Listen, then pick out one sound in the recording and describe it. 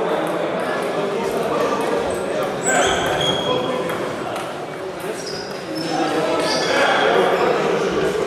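Table tennis balls click on tables and paddles in a large echoing hall.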